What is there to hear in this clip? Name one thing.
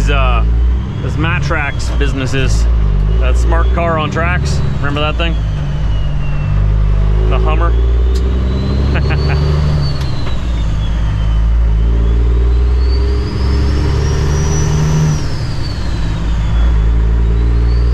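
A truck's turbo whistles, rising and falling with the engine.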